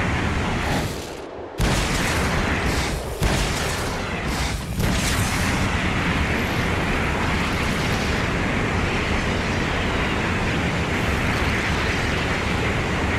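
A vehicle engine hums steadily as it drives over rough ground.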